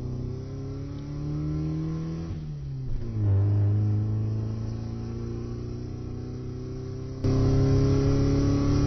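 A car engine roars steadily, its pitch sliding down and then holding.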